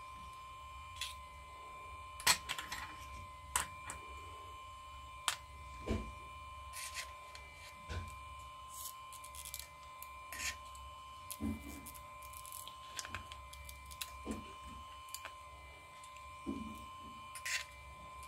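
Small metal tools click and scrape against a phone's metal frame.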